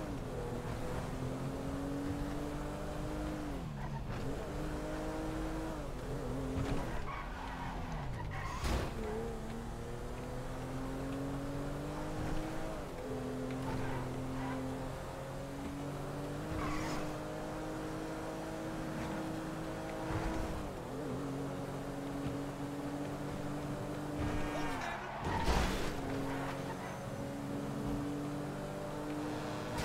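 A car engine revs hard, rising and falling in pitch as the car shifts gears.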